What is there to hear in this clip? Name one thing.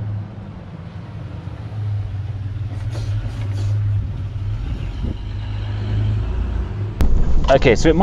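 A car engine idles with a low hum.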